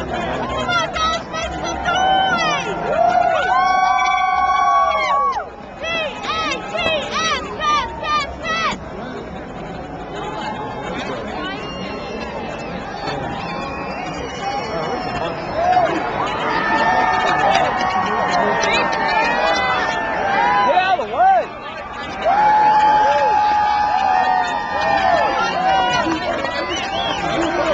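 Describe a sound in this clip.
A large crowd of young men and women sings and chants loudly together outdoors.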